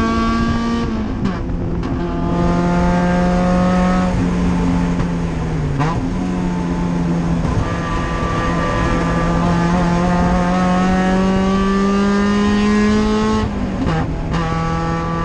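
Gears shift with sharp clunks.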